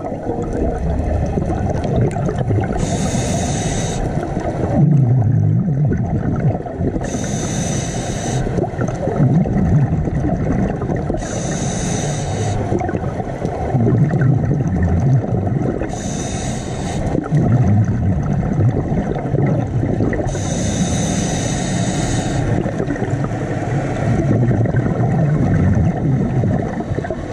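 A low, muffled underwater rumble goes on steadily.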